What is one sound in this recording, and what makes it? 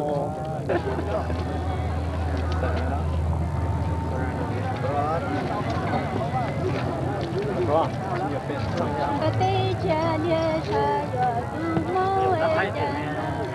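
A crowd of people chatters in the background outdoors.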